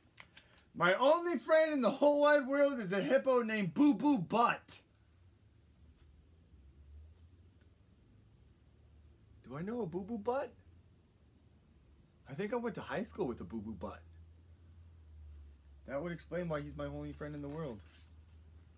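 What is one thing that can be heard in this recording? A young man reads aloud up close with animation, pausing between lines.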